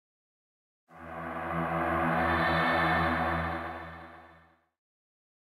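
A heavy rumbling swells and fades away.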